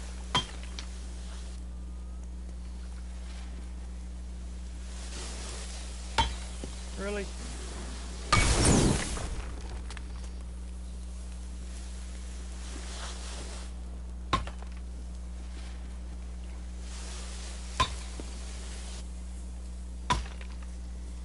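Sharp cracks strike stone again and again.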